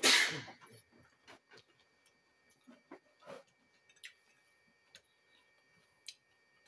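A man chews food noisily up close.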